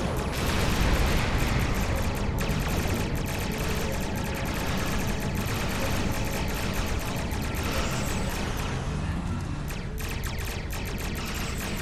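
Weapon beams fire in rapid bursts.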